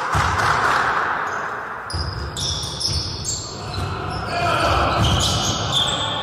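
A basketball thumps as it is dribbled on the floor.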